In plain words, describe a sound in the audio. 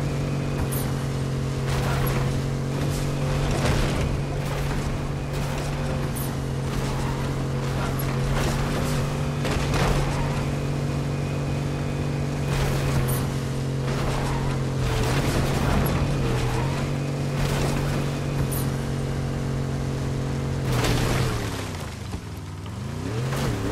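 A car engine roars steadily, its pitch rising and falling with speed.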